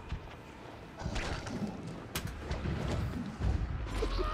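A loud scuffle with heavy impacts erupts up close.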